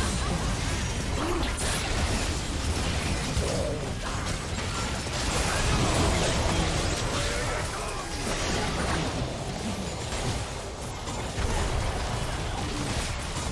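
Magic spells and weapons crash and crackle in a busy video game battle.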